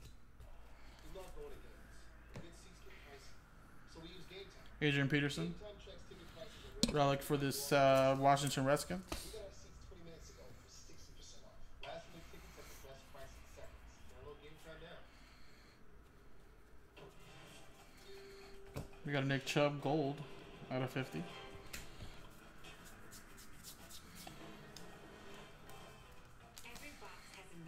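Trading cards rustle and slide as they are shuffled in hands.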